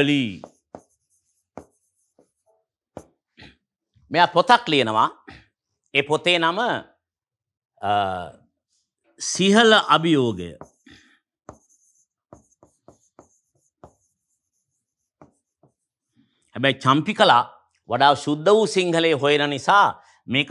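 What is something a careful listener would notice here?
A marker taps and scrapes on a board.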